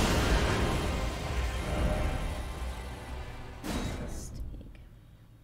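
A loud burst of roaring fire and crashing effects from a game.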